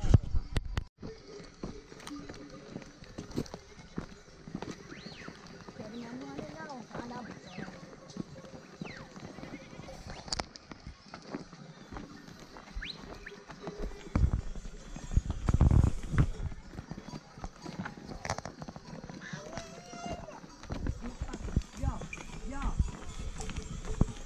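Horse hooves clop and scrape on a rocky trail.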